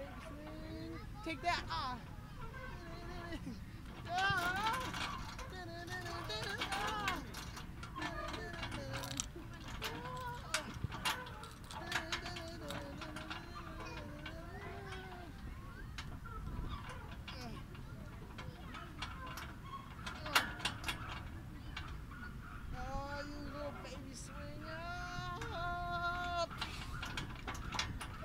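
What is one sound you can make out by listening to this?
A boy talks and calls out playfully nearby.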